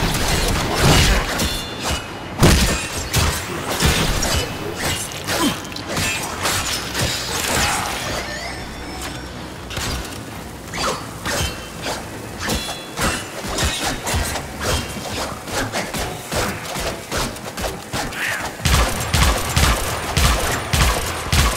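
Energy blasts hit with loud thuds.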